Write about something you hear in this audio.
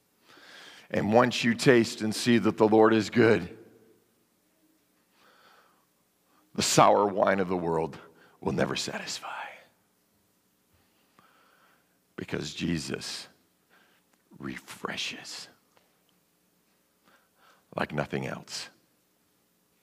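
A man speaks with animation through a microphone in a large echoing hall, pausing often.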